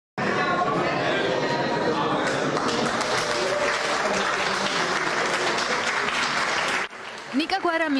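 A crowd murmurs and chatters in a room.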